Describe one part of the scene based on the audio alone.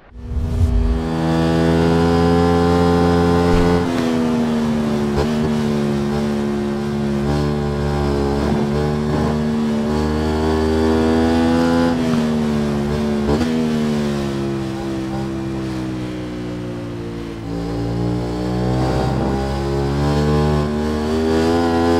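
A motorcycle engine roars at high revs, its pitch rising and falling as it shifts gears and slows for bends.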